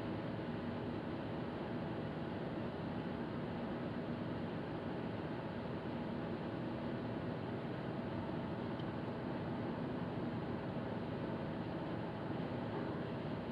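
A car's engine hums steadily, heard from inside the car.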